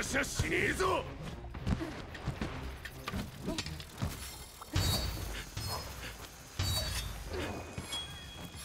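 Heavy weapon blows land with loud crashing impacts.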